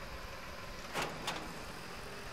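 A trailer hitch clanks twice as it couples.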